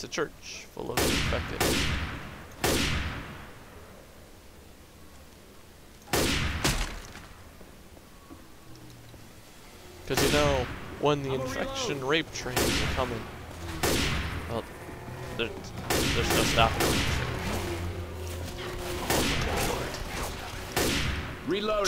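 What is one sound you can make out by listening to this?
A sniper rifle fires loud single shots that echo.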